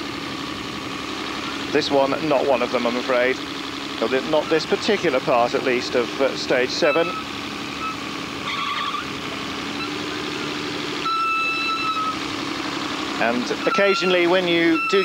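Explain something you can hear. An off-road vehicle's engine labours as the vehicle climbs a steep slope.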